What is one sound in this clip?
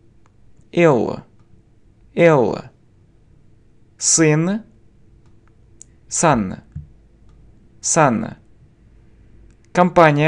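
A man speaks single words slowly and clearly into a close microphone, with pauses between them.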